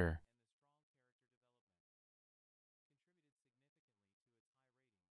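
A man speaks quietly into a microphone.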